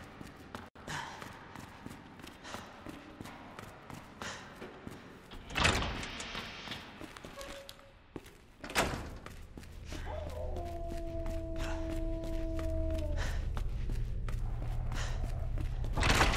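Footsteps walk steadily on a hard floor.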